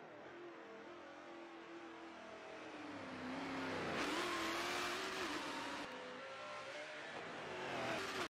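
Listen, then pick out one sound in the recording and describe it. A race car engine roars, its pitch rising and falling as it shifts gears.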